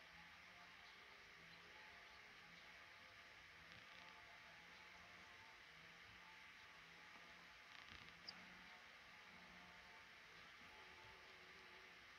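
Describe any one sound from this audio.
Baby birds cheep faintly from a nest, close by.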